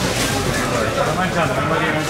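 A cleaver chops into a swordfish.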